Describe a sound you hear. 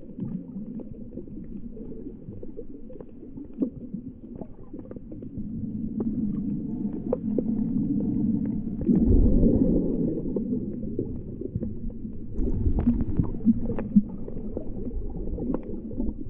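Water rumbles and swirls in a muffled, low underwater wash.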